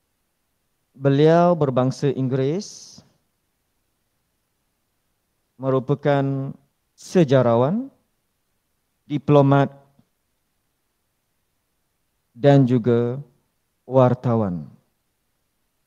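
A man speaks calmly in short phrases through an online call, with pauses between them.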